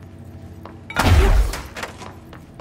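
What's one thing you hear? A heavy door swings open with a loud thud.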